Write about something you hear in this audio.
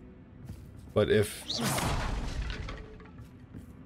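A magical spell whooshes and rumbles.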